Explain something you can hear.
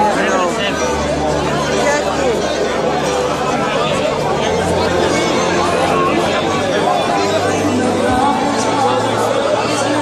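A middle-aged woman talks cheerfully close to the microphone.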